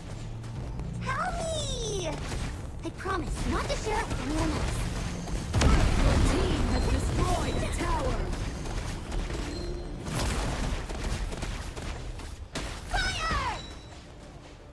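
Game sound effects of spells and hits play during fighting.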